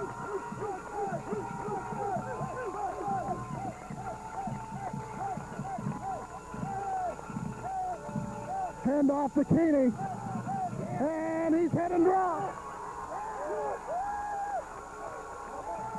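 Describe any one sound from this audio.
A large outdoor crowd cheers and shouts throughout, swelling loudly at times.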